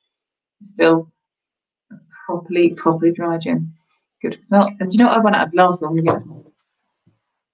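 A woman talks calmly and close by, as if through a microphone.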